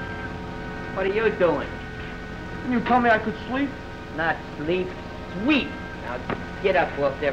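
A man talks loudly and with animation, close by.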